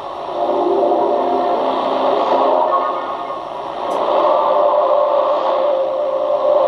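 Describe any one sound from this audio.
A shortwave radio receiver plays a crackly, fading broadcast through its small loudspeaker.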